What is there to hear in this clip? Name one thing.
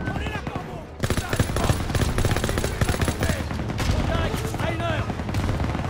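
A submachine gun fires rapid bursts close by.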